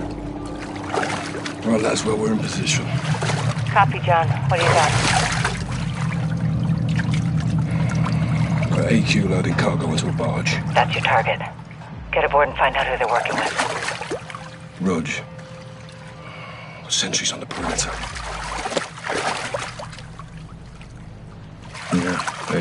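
A man speaks quietly and calmly, close up.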